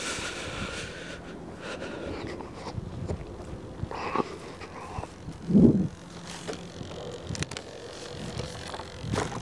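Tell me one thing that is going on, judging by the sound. Wind blows across an open field.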